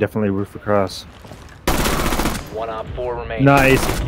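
Gunshots fire in quick bursts at close range.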